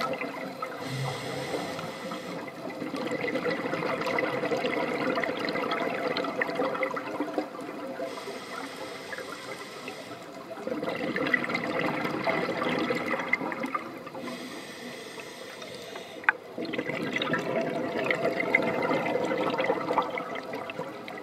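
Scuba bubbles gurgle and rush upward underwater in repeated bursts.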